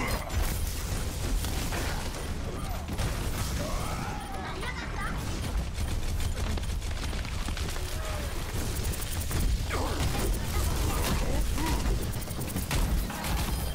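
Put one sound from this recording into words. An electric weapon crackles and buzzes as it fires.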